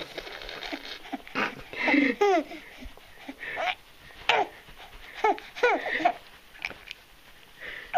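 A baby giggles happily.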